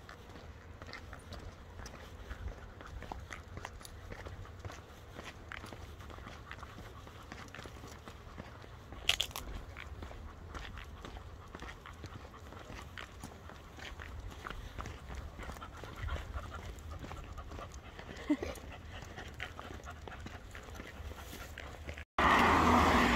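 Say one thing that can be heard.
Footsteps and a dog's paws patter on paving outdoors.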